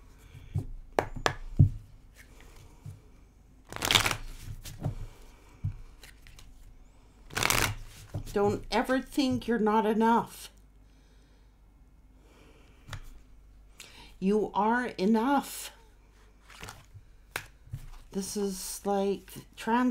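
Cards shuffle and slap against each other.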